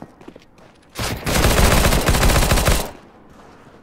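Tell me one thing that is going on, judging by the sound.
A submachine gun fires a rapid burst.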